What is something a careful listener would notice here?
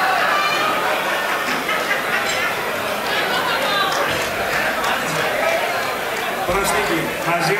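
Several men talk with each other nearby.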